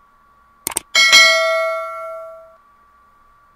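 A small bell chimes and rings out.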